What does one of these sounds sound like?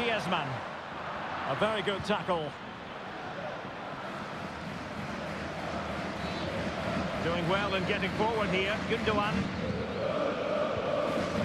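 A large crowd murmurs and roars steadily in a big open stadium.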